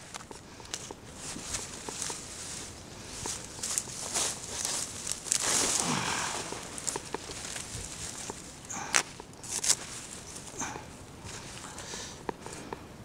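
Leaves rustle as plants are pushed aside and handled.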